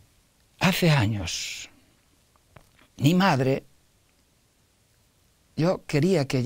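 An elderly man speaks thoughtfully and slowly, close to a microphone, with pauses.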